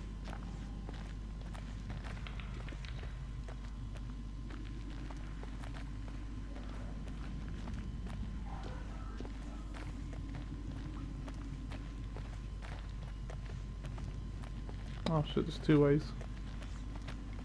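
Footsteps tread on wooden boards and steps.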